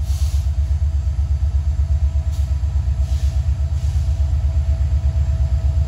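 A diesel locomotive engine throbs with a deep, steady rumble as a train approaches.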